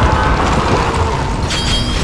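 A large creature roars.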